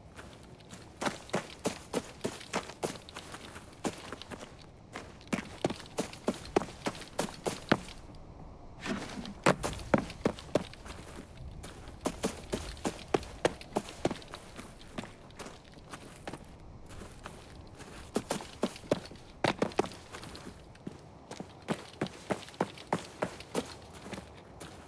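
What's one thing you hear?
Footsteps tread over grass and gravel at a steady walking pace.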